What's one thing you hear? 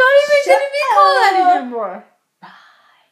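A woman sings loudly and playfully close to the microphone.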